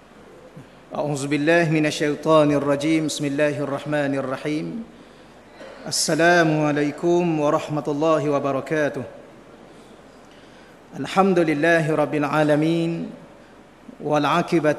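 A man chants in a melodic voice through a microphone.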